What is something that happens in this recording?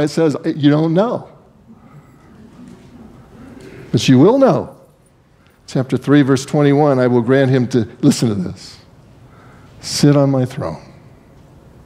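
An older man speaks slowly and expressively through a microphone in a slightly echoing room, with long pauses.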